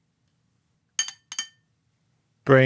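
A spoon clinks twice against a china teacup.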